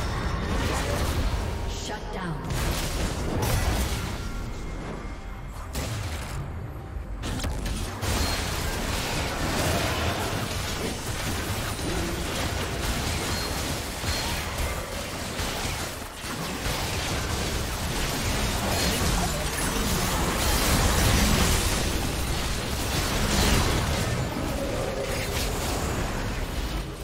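Video game combat effects crackle, whoosh and bang in quick bursts.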